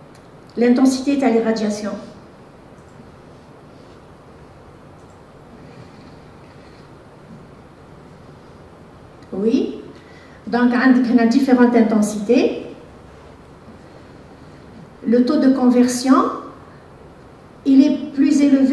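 A woman speaks into a microphone over a loudspeaker in a large echoing hall, in short phrases with pauses.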